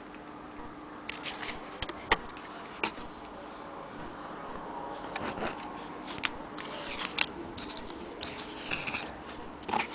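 Stiff paper crinkles and rustles as it is handled.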